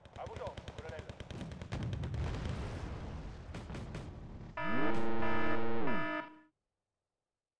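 Shells explode with dull, rumbling booms.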